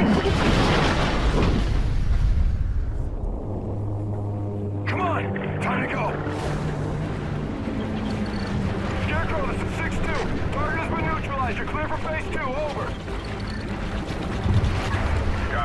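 Water churns and rushes with a deep, heavy rumble.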